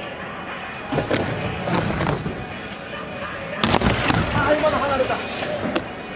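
A skateboard clacks sharply against a ramp.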